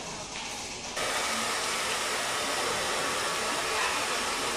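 Water sprays from a shower head onto hair.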